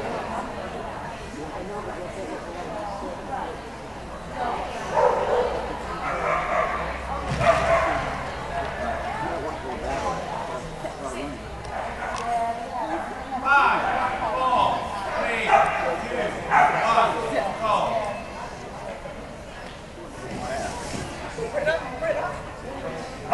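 A crowd of people talk and call out in a large echoing hall.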